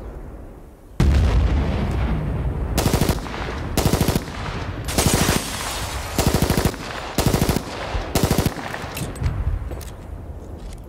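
A pistol fires single sharp shots.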